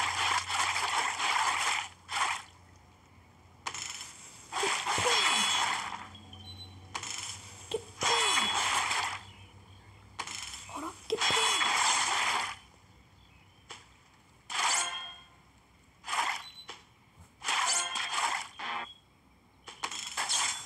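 Swift blade swooshes slice through fruit with wet splats.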